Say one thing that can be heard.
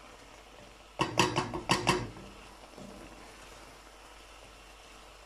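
A wooden spoon stirs and scrapes food in a pan.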